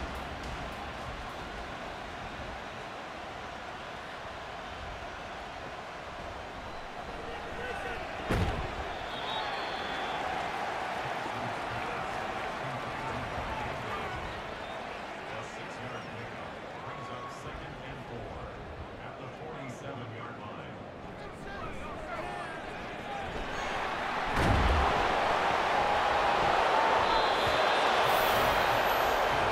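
A large crowd murmurs and cheers in a stadium, swelling into a loud roar near the end.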